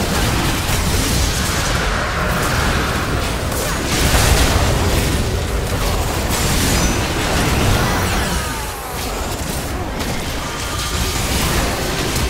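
Magic blasts and explosions crackle and boom in a hectic fight.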